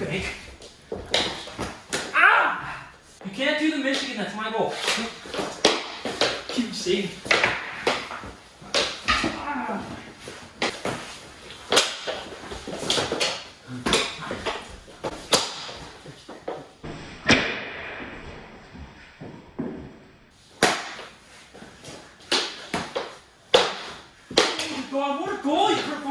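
A young woman shouts and laughs.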